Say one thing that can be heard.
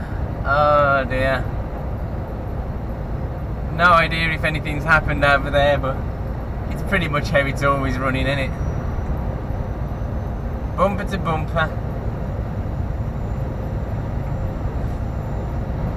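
A vehicle's engine hums steadily while driving.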